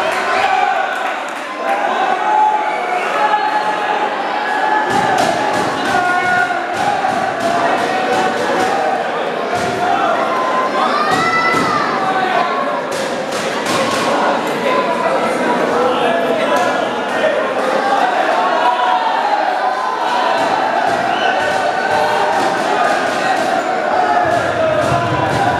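A crowd talks and shouts throughout a large echoing hall.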